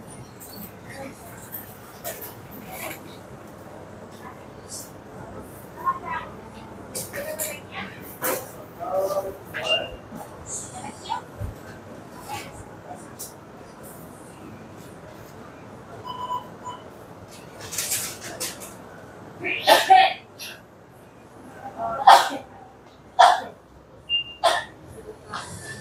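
Refrigerators hum steadily.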